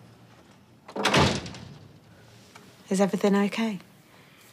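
A young woman speaks with worry up close.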